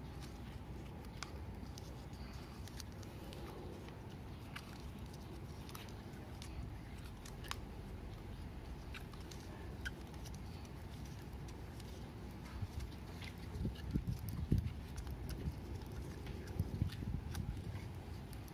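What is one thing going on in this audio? Plastic tape crinkles and rustles as it is wrapped around a pipe thread.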